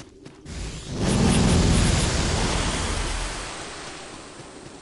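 A loud magical blast booms and roars, then slowly fades.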